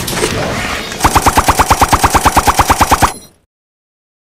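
A rapid burst of rhythmic game blasts plays.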